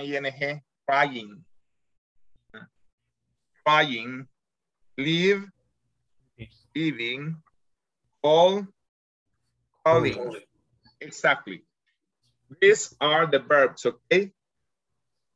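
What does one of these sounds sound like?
A man speaks slowly and clearly over an online call, pausing between words.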